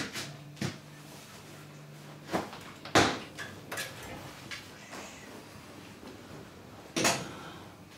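A heavy jacket rustles as it is put on.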